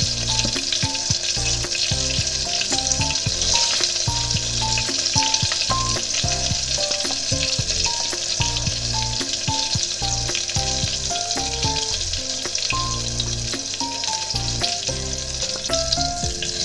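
Oil sizzles and crackles steadily as food fries.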